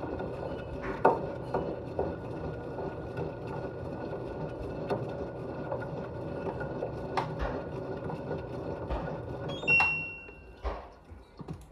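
A small ball thumps against the steel walls of a washing machine drum.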